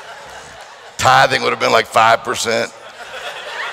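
A man speaks loudly through a microphone in a large echoing hall.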